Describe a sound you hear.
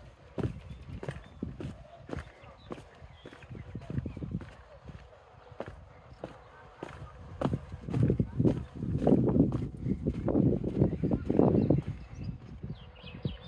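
Footsteps tread on stone steps and then on wooden boards.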